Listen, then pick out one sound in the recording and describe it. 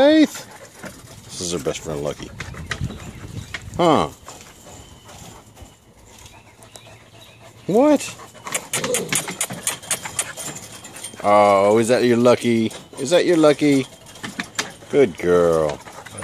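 A puppy yelps and squeals in high, whining bursts close by.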